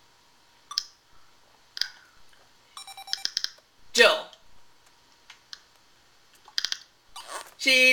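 Electronic video game blips and beeps play in short bursts.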